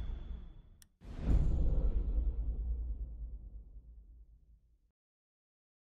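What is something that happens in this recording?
A second heavy whoosh hits and fades away.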